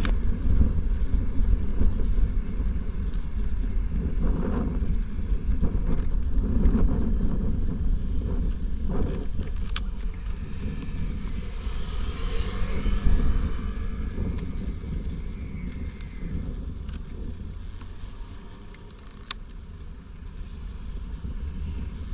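Bicycle tyres roll on a paved path.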